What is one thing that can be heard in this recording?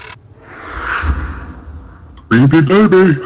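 A wooden door creaks slowly open.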